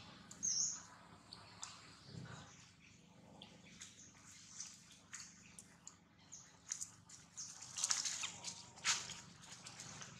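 Dry leaves rustle and crackle as monkeys move about.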